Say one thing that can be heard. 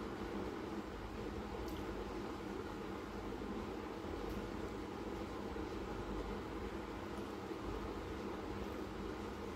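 Hands softly squeeze and crumble a dry, crumbly mixture.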